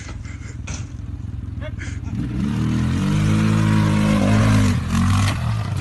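A quad bike engine idles and then revs loudly as it pulls away.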